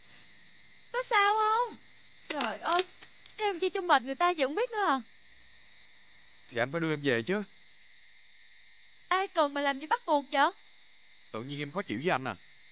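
A man speaks in a sobbing, distressed voice close by.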